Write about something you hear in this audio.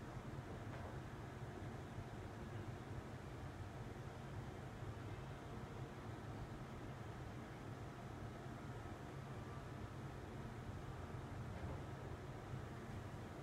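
An extractor fan hums steadily.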